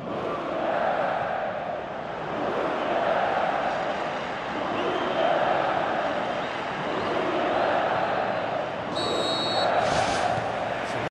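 A large stadium crowd roars and chants in rising and falling waves.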